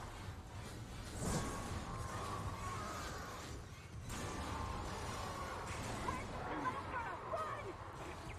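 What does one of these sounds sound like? Heavy boots clank on a metal floor.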